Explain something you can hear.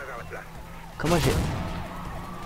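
A heavy landing thumps after a jump.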